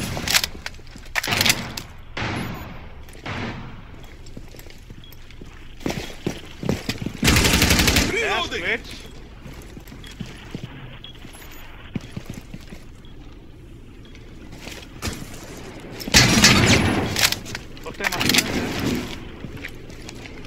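A gun rattles and clicks as it is switched and handled.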